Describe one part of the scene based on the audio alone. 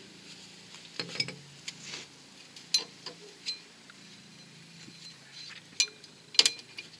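Metal parts clink and knock sharply.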